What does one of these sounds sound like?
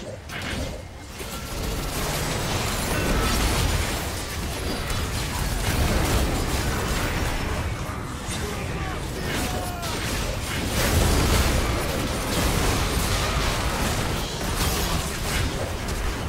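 Spell blasts and impacts crash and crackle rapidly.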